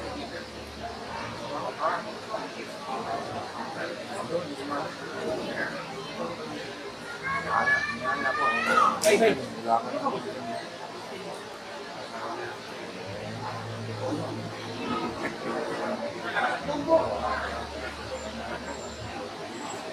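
A crowd of people murmurs and chatters nearby.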